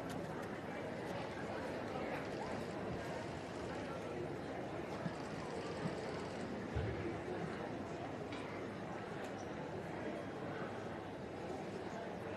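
A crowd murmurs steadily in a large echoing hall.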